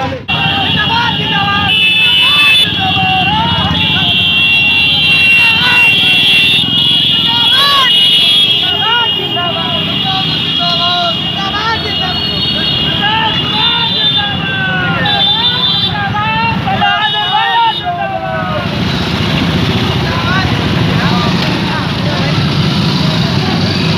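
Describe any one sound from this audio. Motorcycle engines rumble and idle close by.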